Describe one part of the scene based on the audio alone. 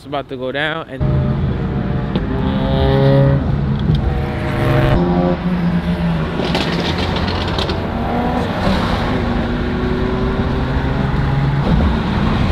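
A car rumbles steadily as it drives along.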